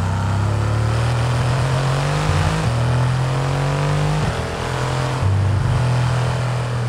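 A sports car engine accelerates at full throttle, shifting up through the gears.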